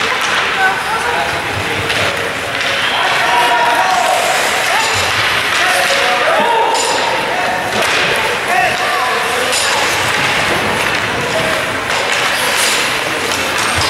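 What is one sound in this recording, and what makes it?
Children and adult spectators shout and cheer in a large echoing rink.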